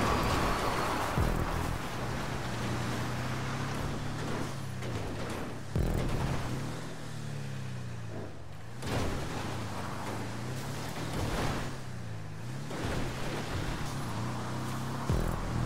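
Tyres crunch over loose dirt and gravel.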